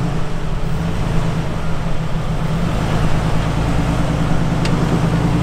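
Tyres grind over rock.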